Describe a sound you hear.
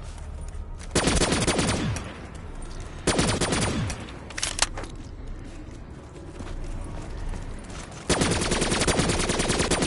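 A rapid-fire gun shoots in short loud bursts.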